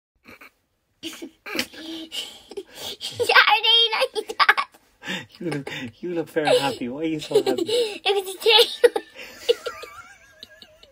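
A young girl talks excitedly close to the microphone.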